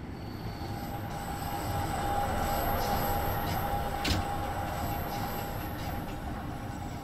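Train brakes squeal as the train slows.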